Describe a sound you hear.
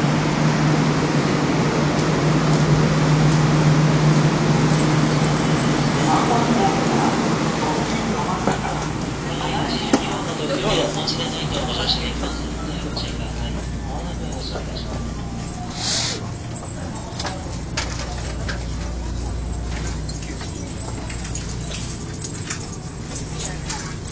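A train's ventilation hums steadily.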